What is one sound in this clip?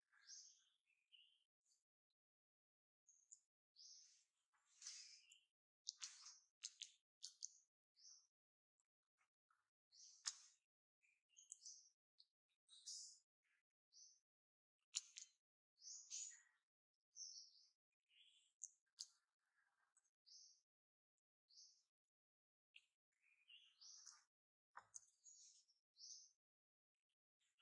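A baby monkey squeaks in short, high-pitched bursts.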